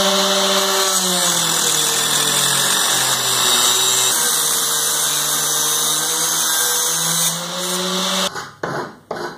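An angle grinder cuts through metal, its whine dropping under the load.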